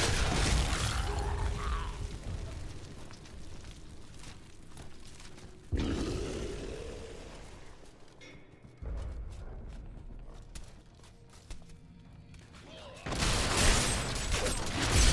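Weapon strikes and hit effects clash in quick bursts.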